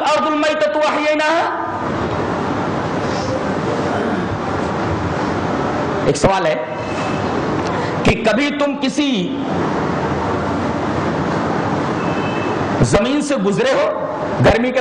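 A man speaks forcefully into a microphone, heard through a loudspeaker.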